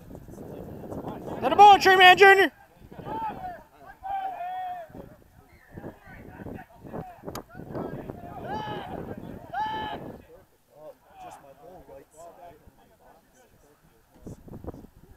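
Men shout and cheer loudly nearby, outdoors.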